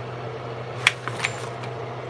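A foil pan clatters as it is handled.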